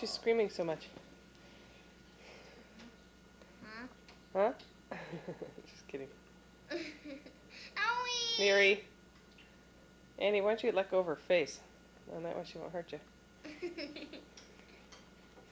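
A young girl talks playfully close by.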